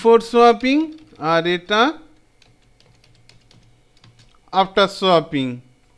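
Keys tap on a computer keyboard.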